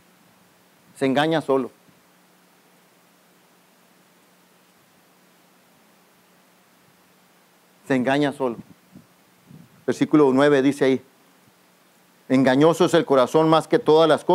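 A man speaks calmly through a microphone, with long pauses between phrases.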